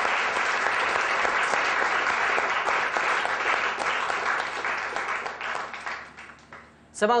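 A group of people applauds.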